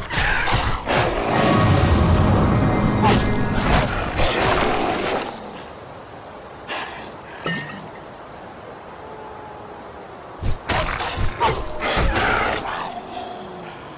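Blades slash and strike in quick, heavy blows during a fight.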